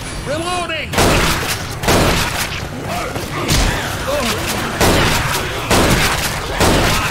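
A shotgun fires loud, booming blasts again and again.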